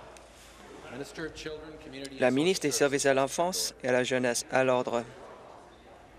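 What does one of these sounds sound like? A man speaks loudly and formally into a microphone in a large echoing chamber.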